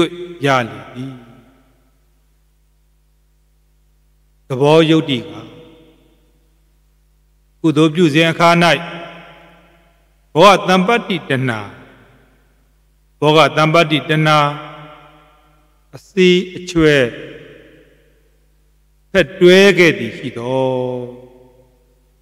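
A man chants slowly into a close microphone in short phrases separated by pauses.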